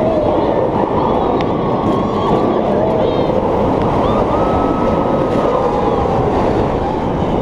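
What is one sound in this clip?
Wind rushes loudly past the riders.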